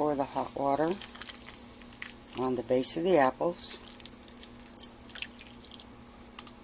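Water pours into a dish.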